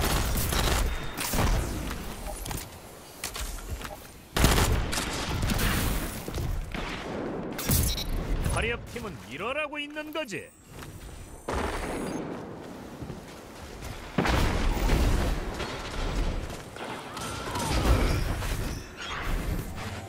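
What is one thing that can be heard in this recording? Gunshots bang in loud, sharp bursts.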